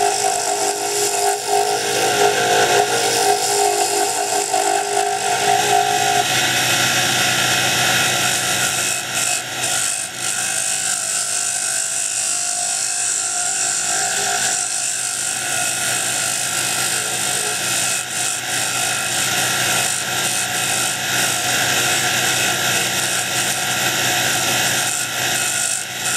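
Sandpaper hisses against spinning hardwood on a lathe.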